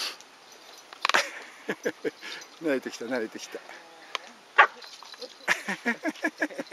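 Dogs whine and yelp excitedly close by.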